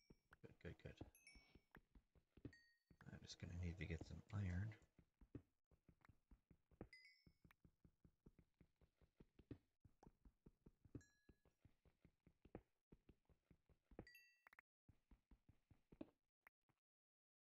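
A pickaxe taps rapidly on stone, breaking blocks.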